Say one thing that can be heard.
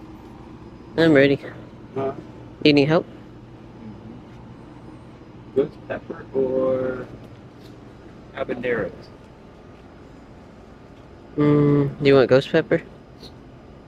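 A young man talks casually close by, in short bursts.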